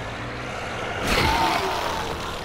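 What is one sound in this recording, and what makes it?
A heavy thud sounds as the truck hits a person.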